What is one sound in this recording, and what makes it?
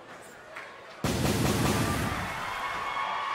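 Pyrotechnics burst with a loud whoosh.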